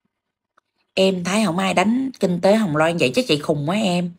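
A woman speaks emotionally, close and clear, as if through a phone.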